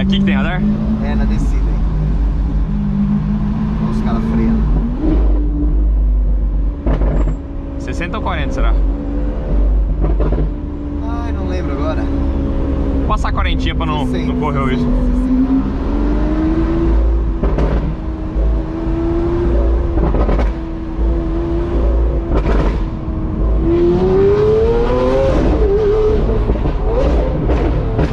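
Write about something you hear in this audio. A powerful car engine hums and rises and falls in pitch as the car drives.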